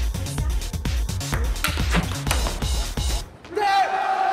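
A table tennis ball is hit back and forth in a quick rally.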